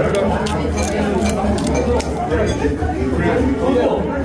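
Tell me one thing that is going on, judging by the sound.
A crab shell cracks and snaps as it is pulled apart.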